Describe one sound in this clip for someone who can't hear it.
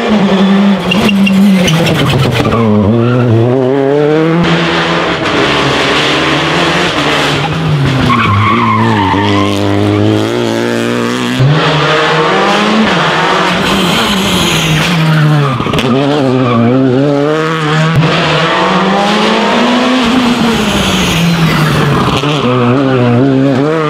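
Rally car engines roar loudly as they rev up and down through the gears.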